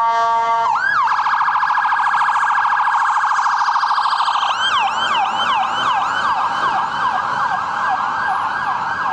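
An ambulance siren wails loudly close by, switching from a rapid yelp to a slower wail.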